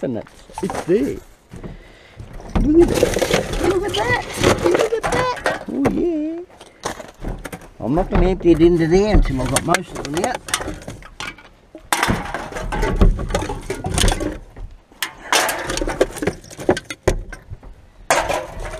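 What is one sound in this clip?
Aluminium cans clink and rattle as a gloved hand sorts through a bin.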